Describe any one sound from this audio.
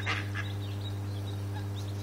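Ducklings peep softly.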